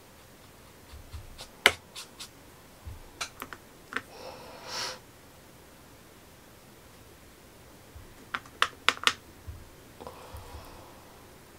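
A paintbrush taps and clicks against paint pans.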